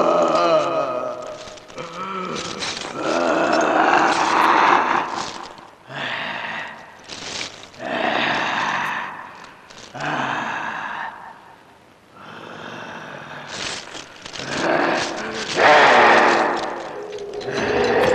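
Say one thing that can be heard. A man wails and cries out in grief, loud and close.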